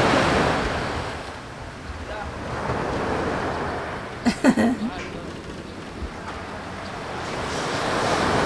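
Wind gusts outdoors, rising and falling.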